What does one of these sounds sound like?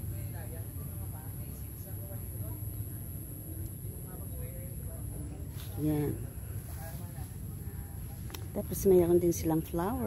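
Wind rustles through palm leaves outdoors.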